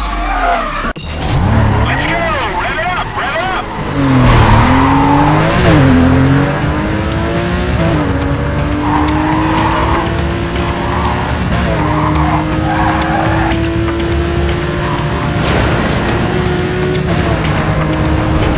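A racing car engine revs and roars at high speed, shifting up through the gears.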